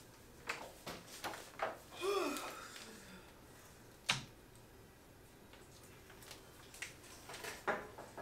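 A door opens and closes.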